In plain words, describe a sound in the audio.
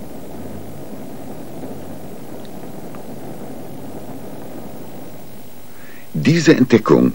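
A gas flame burns with a soft, steady roar.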